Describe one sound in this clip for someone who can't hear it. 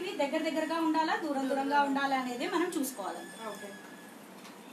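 A woman speaks calmly close by.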